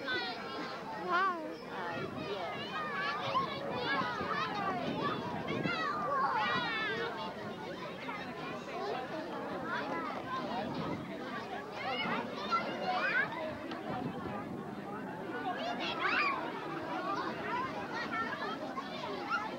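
A crowd of children and adults chatters and shouts nearby, outdoors.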